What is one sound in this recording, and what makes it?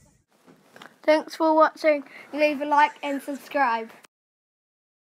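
A young boy speaks close to the microphone.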